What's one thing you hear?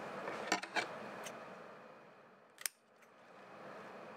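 Scissors snip through a plant stem.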